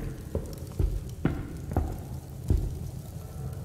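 Footsteps thud on stone floor.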